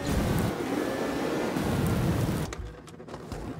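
A snowmobile engine roars loudly.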